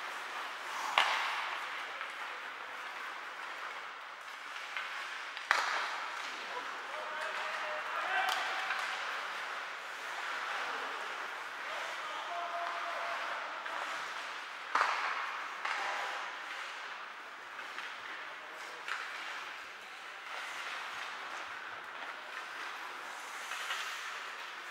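Hockey sticks and pucks clack and bang against the boards.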